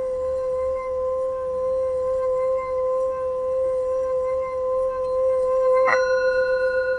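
A singing bowl hums steadily as a stick is rubbed around its rim.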